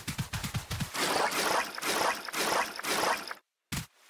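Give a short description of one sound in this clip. Water splashes as a large creature wades through it.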